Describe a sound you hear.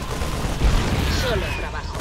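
Explosions boom in a video game battle.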